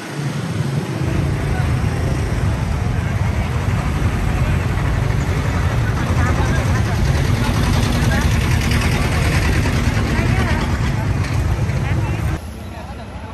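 Motorbike engines rumble past slowly.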